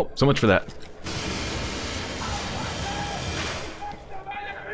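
A heavy gun fires with a loud hissing blast.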